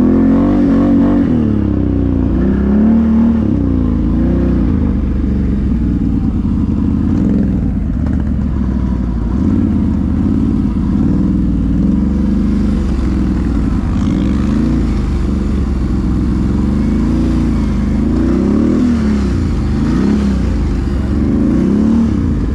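A quad bike engine revs and drones up close, rising and falling in pitch.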